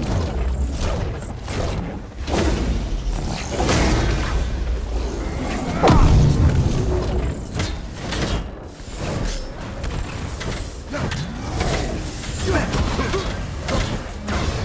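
Heavy blasts and impacts crash repeatedly.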